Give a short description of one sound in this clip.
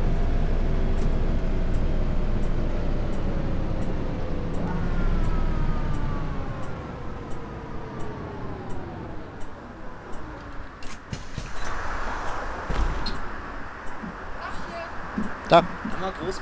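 Rhythmic clicking of a turn indicator ticks steadily.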